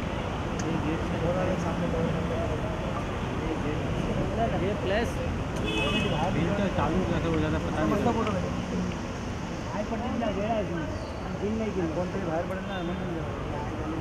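Several people talk in low voices indoors.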